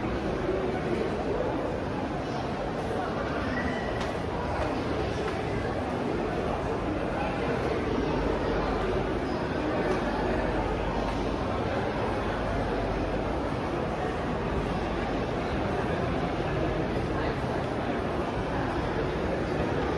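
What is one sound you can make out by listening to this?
A crowd of people murmurs in the distance in a large echoing hall.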